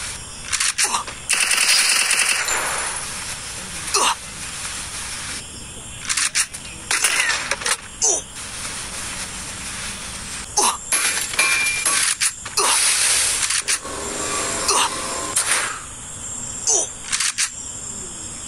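Gunshots fire in short bursts.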